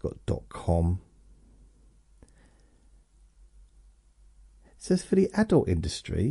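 A middle-aged man speaks with animation into a close microphone, pausing between phrases.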